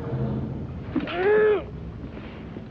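A gagged young woman gives a muffled cry.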